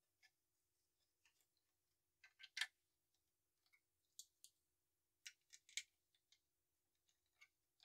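Plastic toy bricks click and clatter as they are handled and pressed together.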